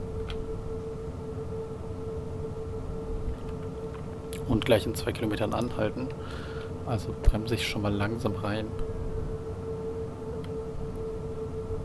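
An electric train motor hums steadily with a high, even whine.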